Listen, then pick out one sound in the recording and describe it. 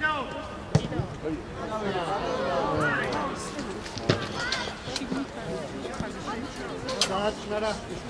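A football thuds as it is kicked.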